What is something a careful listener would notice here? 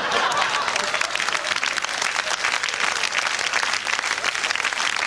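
An audience claps and applauds loudly in a large room.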